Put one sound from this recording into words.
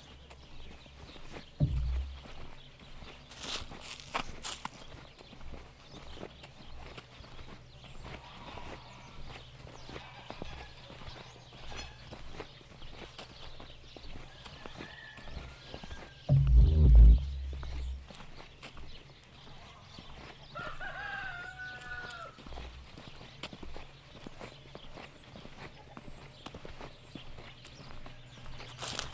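Wheels roll and crunch over a muddy dirt track.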